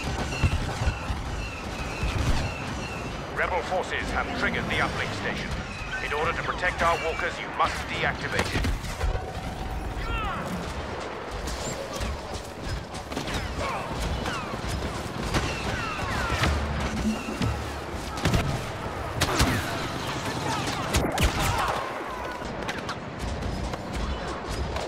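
Laser blasts fire rapidly.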